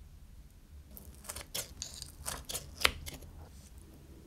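Scissors snip through soft meat close to a microphone.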